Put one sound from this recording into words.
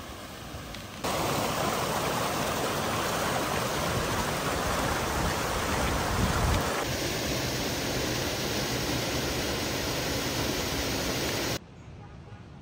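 A small waterfall splashes into a pond.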